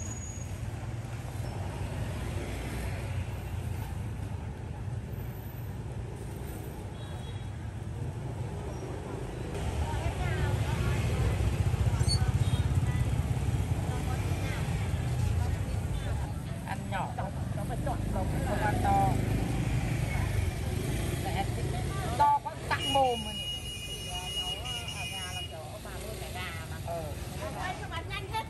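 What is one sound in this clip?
A busy street hums with low traffic outdoors.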